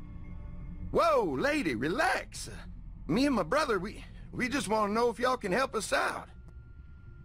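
A young man speaks nervously with animation.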